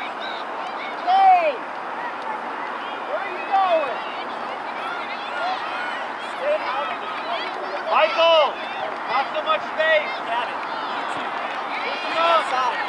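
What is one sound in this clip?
Spectators shout and cheer loudly now and then.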